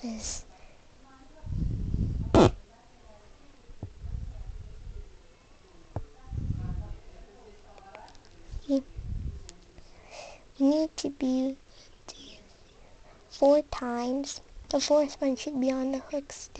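Rubber bands rub and squeak softly against a hook.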